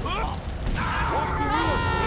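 A gun fires several shots.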